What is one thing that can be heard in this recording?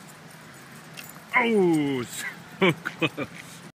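A dog's paws patter on pavement as it runs.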